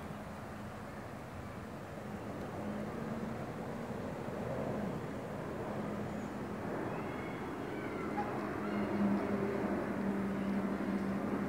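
Wind rushes steadily outdoors through the trees.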